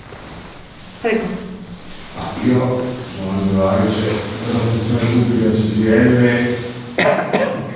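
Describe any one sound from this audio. A woman speaks with animation nearby.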